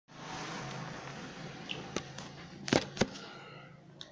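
Knocks and bumps of handling the phone sound nearby.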